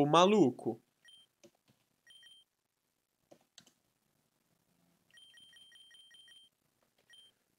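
Short electronic menu beeps sound in quick succession.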